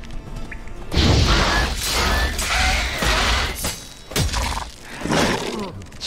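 A sword swings and strikes.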